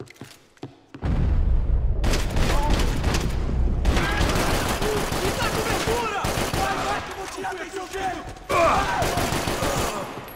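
Gunfire rattles in rapid, loud bursts with heavy echo.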